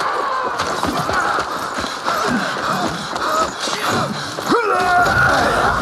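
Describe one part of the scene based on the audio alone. Weapons clash in a chaotic battle.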